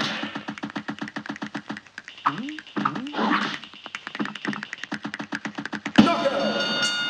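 Chiptune game music plays with rapid beeps.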